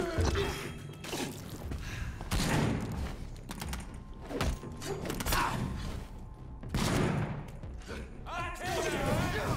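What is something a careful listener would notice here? Heavy blows and slashes thud and swish in a fight.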